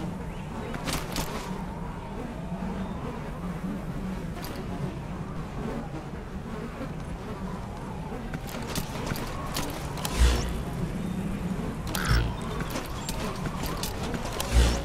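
A man crawls over sand, gear rustling and scraping.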